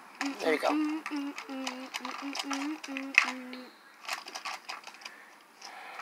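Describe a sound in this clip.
Plastic toys clack together as they are handled.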